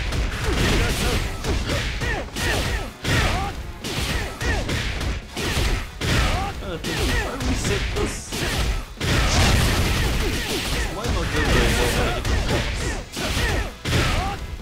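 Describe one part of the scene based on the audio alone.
Punches and blasts crash rapidly in a fast fight.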